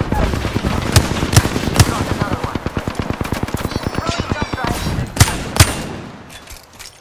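A gun fires in fast, loud bursts.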